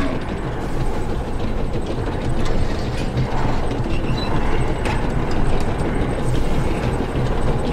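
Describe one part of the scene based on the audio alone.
A lift cage rumbles steadily as it descends a shaft.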